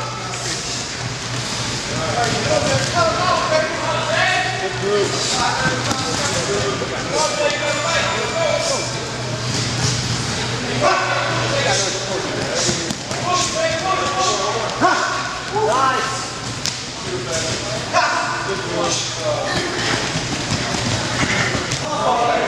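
Bare feet thump and patter quickly on padded mats.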